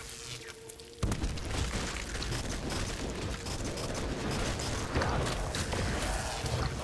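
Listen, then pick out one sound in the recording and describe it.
A rifle fires shots in quick bursts.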